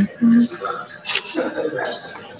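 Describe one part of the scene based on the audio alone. A hand rubs and bumps against a phone close by.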